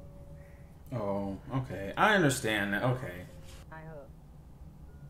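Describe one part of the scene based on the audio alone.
A young man exclaims and talks with animation close by.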